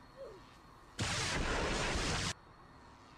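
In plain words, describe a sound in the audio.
Flames whoosh and roar loudly.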